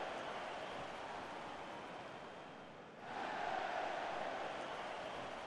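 A large stadium crowd roars and cheers, dipping briefly and then swelling louder.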